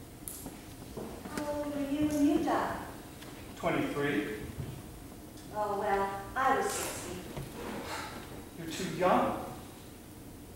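A young woman speaks with animation, heard from the audience.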